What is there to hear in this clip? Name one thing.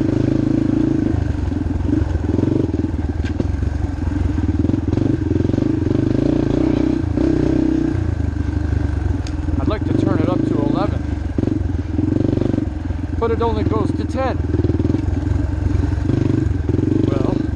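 Tyres crunch over a bumpy dirt trail.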